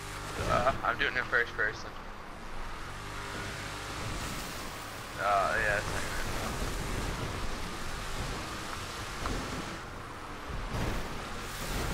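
Water splashes and churns around driving wheels.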